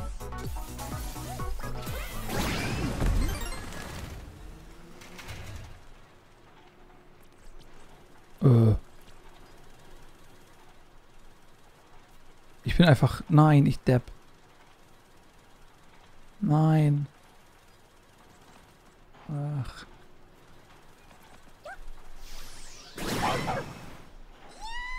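Short electronic chirps and whooshes play from a video game.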